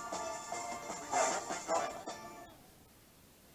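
A band plays music.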